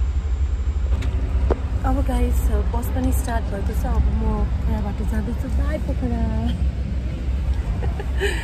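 A woman talks calmly close to the microphone.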